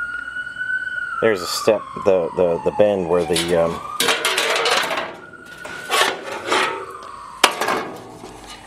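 A metal blade scrapes across a hard, gritty surface.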